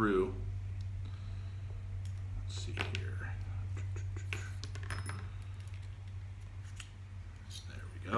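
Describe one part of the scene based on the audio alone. Metal parts click and slide together.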